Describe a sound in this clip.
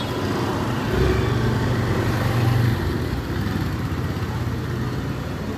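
A motorbike engine drones past.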